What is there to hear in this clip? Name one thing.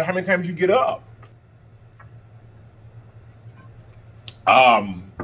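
A man gulps a drink from a glass bottle.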